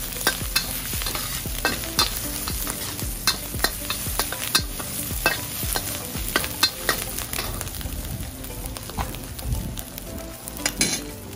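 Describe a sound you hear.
A metal spatula scrapes and clanks against a wok.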